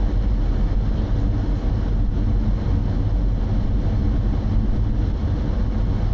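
A car engine hums steadily from inside the car as it drives along.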